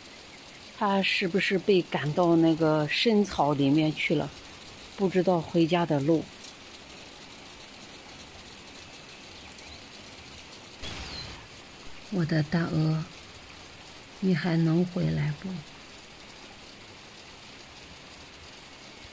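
Rain falls steadily on leaves outdoors.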